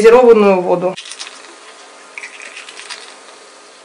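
Water pours from a plastic bottle into a glass.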